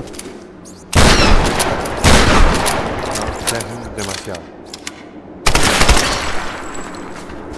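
A gun fires with loud booming blasts.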